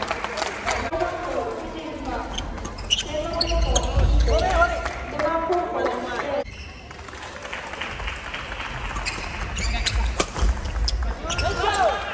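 Young men shout and call out during play.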